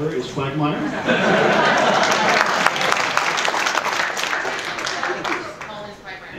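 A large audience cheers and applauds loudly.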